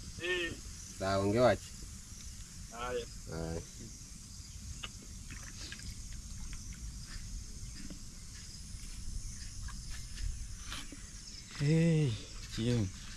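A man speaks close by in short phrases.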